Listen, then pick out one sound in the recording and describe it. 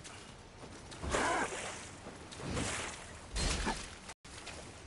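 Heavy blows thud against a foe.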